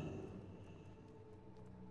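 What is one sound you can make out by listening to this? A magic spell chimes and shimmers.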